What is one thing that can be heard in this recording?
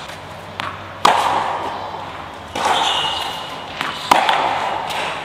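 A tennis ball is struck with a racket, echoing in a large hall.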